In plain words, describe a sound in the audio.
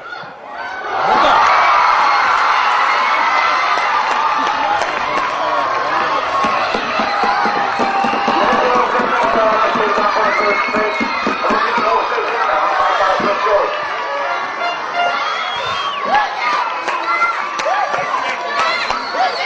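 Men shout and cheer loudly outdoors.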